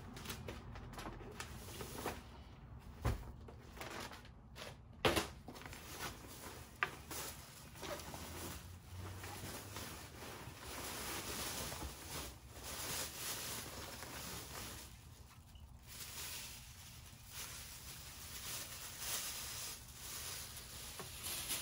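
Heavy padded covers rustle and slide against each other.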